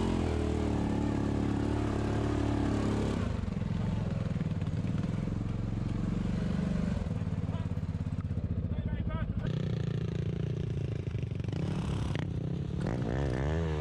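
An off-road vehicle's engine rumbles steadily close by.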